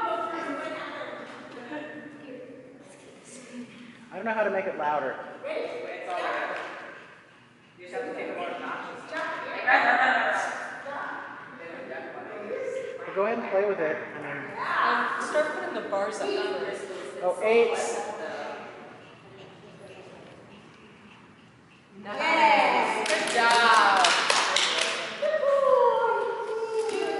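A woman talks encouragingly to a dog in an echoing hall.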